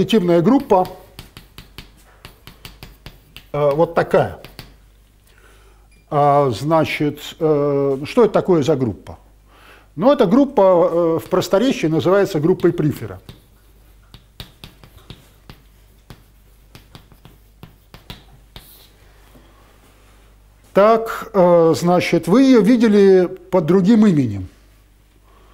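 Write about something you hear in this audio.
An elderly man speaks calmly, pausing often.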